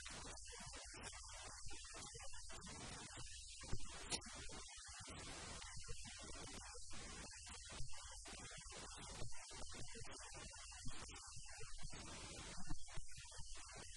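A middle-aged man speaks calmly and steadily into a close microphone.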